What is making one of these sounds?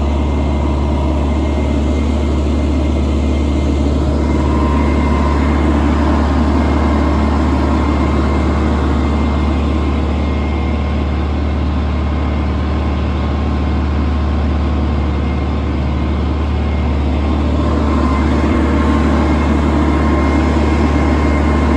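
A tractor engine rumbles steadily close by.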